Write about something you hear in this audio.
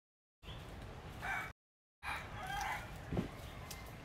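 Fingers tear open a spiky fruit husk.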